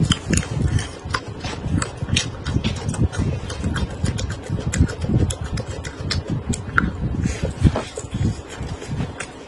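Wet smacking chewing sounds come close to a microphone.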